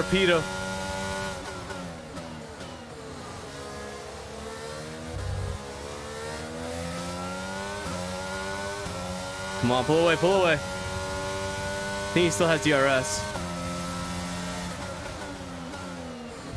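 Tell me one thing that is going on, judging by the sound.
A racing car engine whines loudly, rising and falling as gears change.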